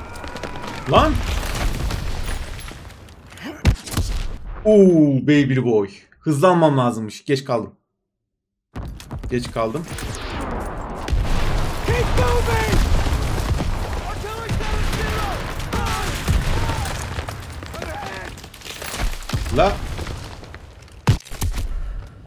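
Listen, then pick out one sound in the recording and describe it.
Gunshots crack now and then.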